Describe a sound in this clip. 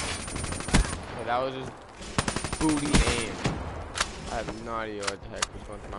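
A rifle fires sharp gunshots.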